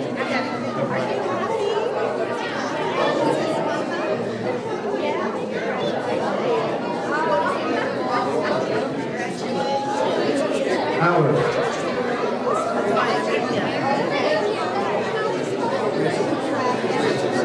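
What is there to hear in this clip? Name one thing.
Several adults chatter with overlapping voices.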